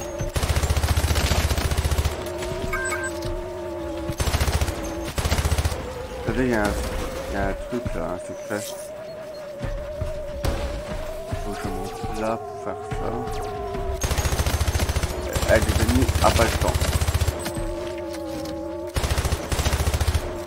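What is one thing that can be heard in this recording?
A rapid-fire gun shoots in loud bursts.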